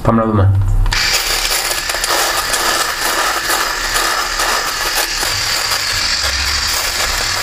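An electric shaver buzzes against stubble.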